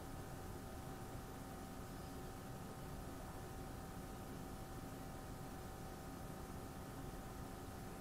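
Computer fans spin slowly with a quiet, steady whir and a faint hum.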